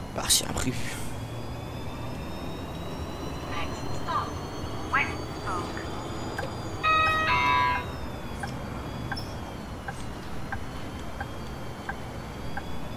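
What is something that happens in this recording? A bus motor whines, its pitch slowly rising and falling.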